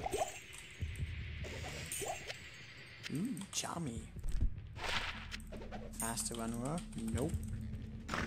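Game spells whoosh and chime.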